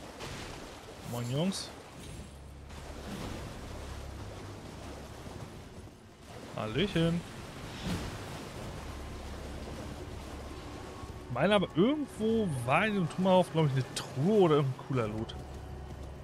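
A man speaks with animation close to a microphone.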